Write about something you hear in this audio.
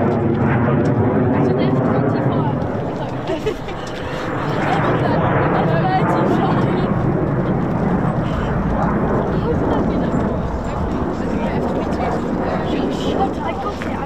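A jet engine roars loudly overhead.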